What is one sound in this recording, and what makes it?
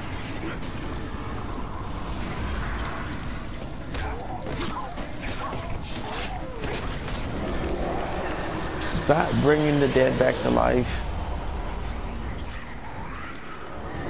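A blade slashes and strikes flesh again and again.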